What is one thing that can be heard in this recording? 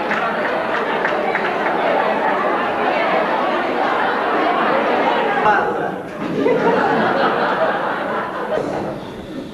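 A large crowd chatters loudly in an echoing hall.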